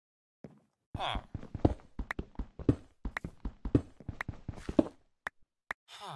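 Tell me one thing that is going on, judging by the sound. A pickaxe chips rapidly at stone blocks.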